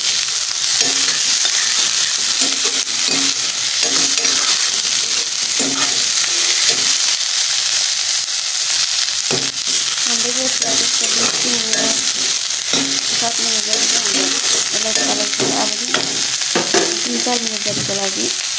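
A metal spoon scrapes and stirs vegetables in a steel pot.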